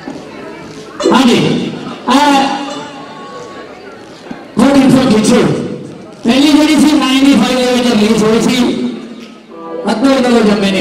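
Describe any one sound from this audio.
A young man sings loudly into a microphone over a sound system.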